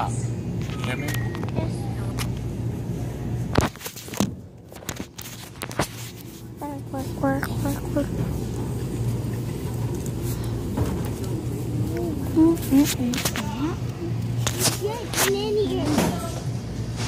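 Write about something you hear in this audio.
Hands rub and knock against a phone microphone.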